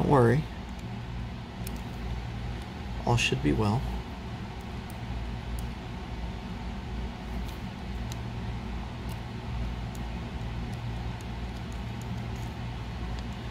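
A small screwdriver ticks and scrapes against tiny screws.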